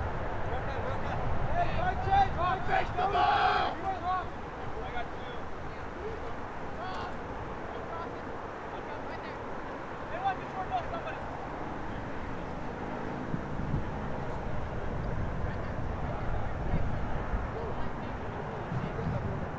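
Wind blows outdoors.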